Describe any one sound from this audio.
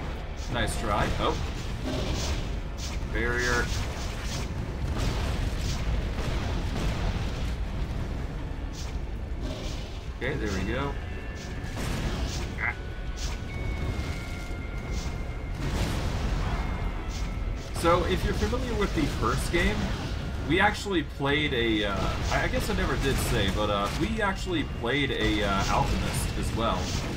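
Magic blasts crackle and boom in quick bursts.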